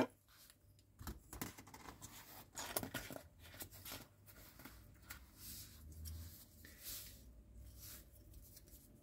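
Small plastic parts click and tap softly as they are handled.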